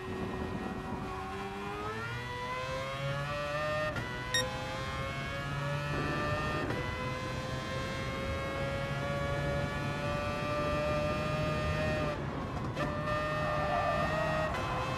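A racing car engine roars at high revs, climbing in pitch through the gears.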